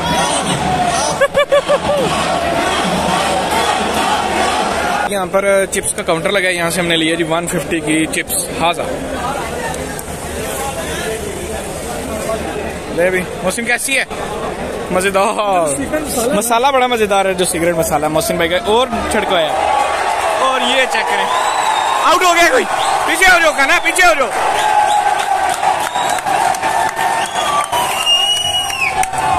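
A large crowd cheers in a stadium.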